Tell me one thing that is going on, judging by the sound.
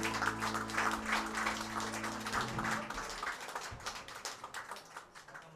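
A live band plays a loud song that rings out and fades.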